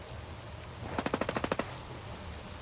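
A rifle fires a short rapid burst.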